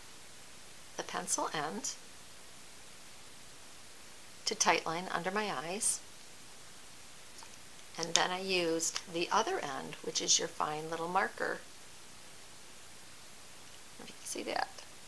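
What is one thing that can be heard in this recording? A middle-aged woman speaks close to a microphone, in short bursts with pauses.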